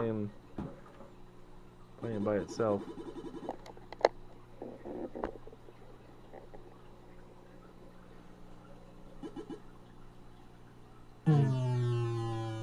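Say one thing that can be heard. Electronic tones beep and warble from an old video game.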